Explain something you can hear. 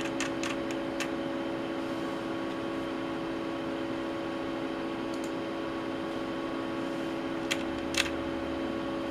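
A knob clicks softly.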